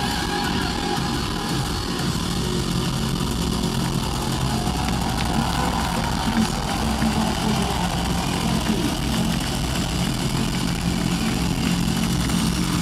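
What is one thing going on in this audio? A big crowd cheers and shouts.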